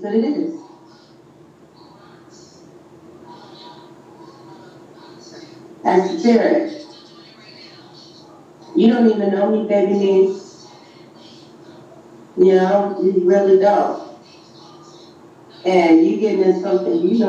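A woman speaks into a microphone in short bursts.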